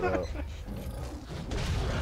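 Steam hisses from a machine.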